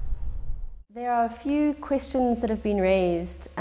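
A young woman speaks calmly, close to a microphone.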